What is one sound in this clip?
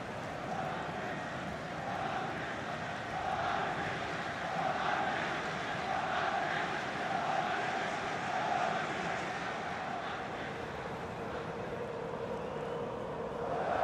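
A large stadium crowd chants and sings loudly, echoing around the stands.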